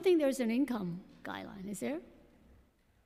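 An elderly woman speaks calmly into a microphone.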